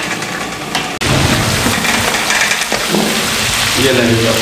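Liquid pours and splashes back into a pot from a strainer.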